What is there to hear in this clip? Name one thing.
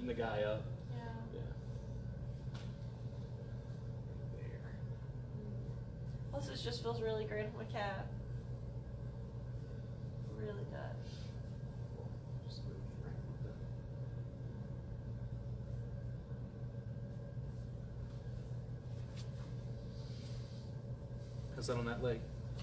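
A man speaks calmly and close by, explaining.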